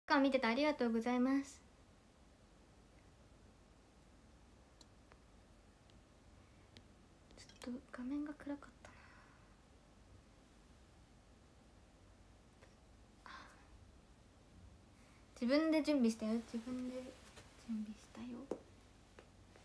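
A young woman speaks animatedly and close into a microphone, in short bursts with pauses.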